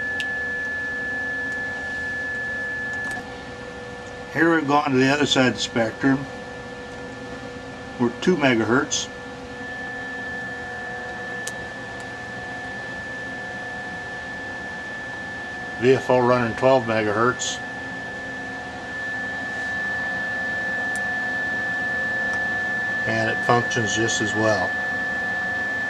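A steady high electronic tone sounds from test equipment.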